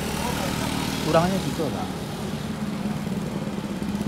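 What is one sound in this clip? A motorcycle engine buzzes past close by.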